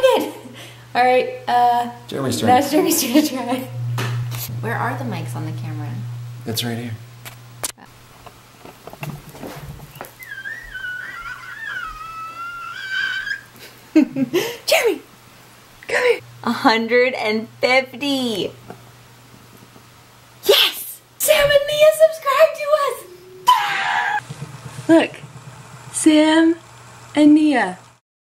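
A young woman talks cheerfully and close by.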